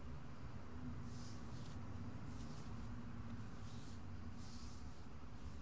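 A hand rubs softly over skin.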